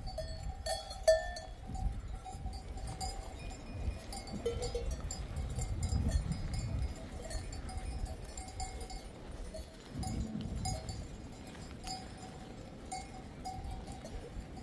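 Wind rumbles past outdoors.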